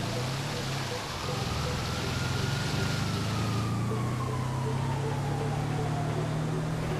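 A van's engine revs as it drives through shallow water.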